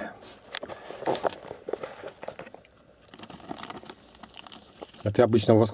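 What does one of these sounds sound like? Paper rustles and crinkles under hands.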